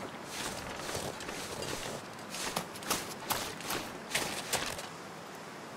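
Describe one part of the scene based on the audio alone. Wind blows steadily through a snowstorm.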